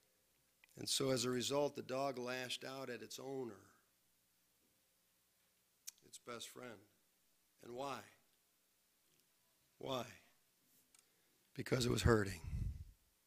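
A middle-aged man speaks calmly and slowly into a microphone, pausing between phrases.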